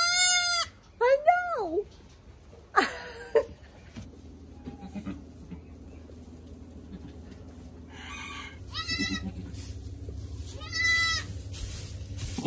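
A young goat bleats.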